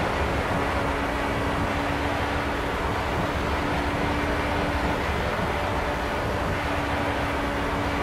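An open-wheel racing car engine drones at high revs at speed.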